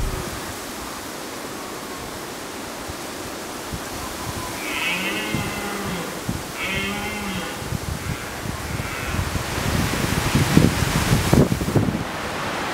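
Wind blows in gusts through tall grass outdoors.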